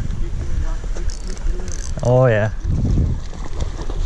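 A fishing lure splashes into a river.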